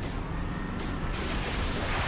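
A fiery projectile whooshes past and bursts.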